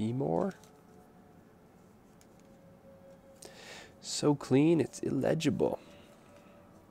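Paper rustles softly as stickers are handled and peeled.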